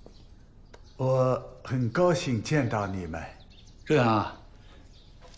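An elderly man speaks in a friendly, calm voice.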